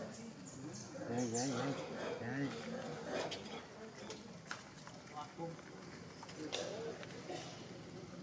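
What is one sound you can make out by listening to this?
A baby monkey squeals and chatters close by.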